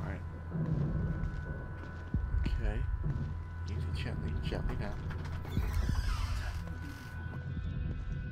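Footsteps scuff softly on a hard floor.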